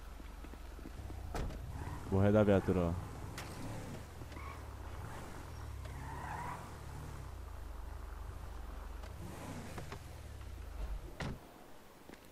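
A car engine hums and revs as a car drives.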